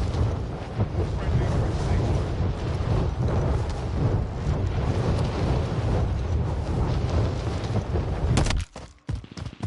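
Wind rushes loudly during a fall through the air.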